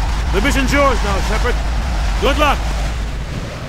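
A man speaks calmly and gravely.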